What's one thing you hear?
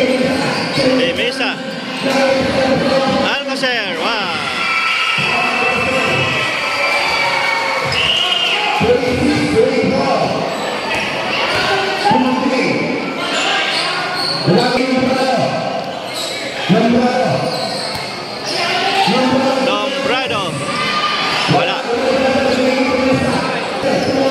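A crowd of spectators cheers and shouts in a large echoing hall.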